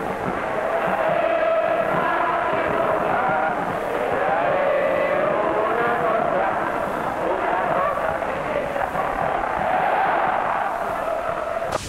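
A large crowd sings together loudly outdoors.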